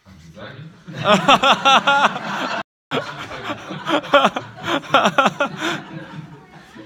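A crowd of people laughs loudly.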